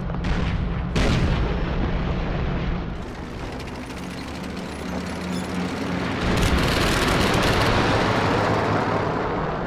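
Shells explode in heavy blasts.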